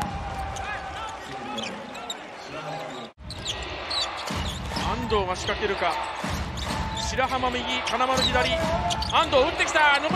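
A crowd cheers and chants in a large echoing arena.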